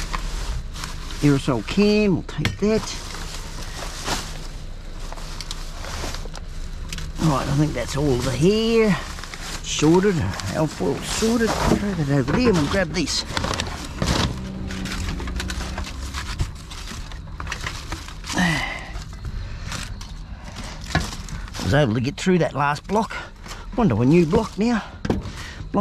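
Plastic bags rustle and crinkle as hands dig through rubbish.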